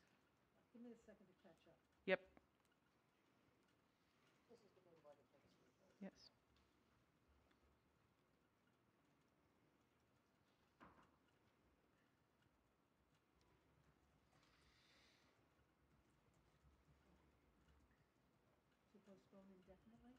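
A woman speaks calmly into a microphone in a large room, in short bursts.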